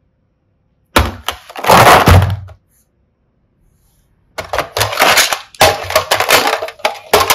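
Plastic toys clatter and knock together as a hand rummages through a basket.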